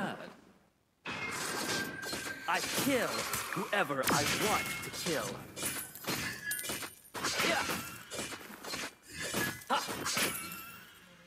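Magic blasts whoosh and crash in a fast fight.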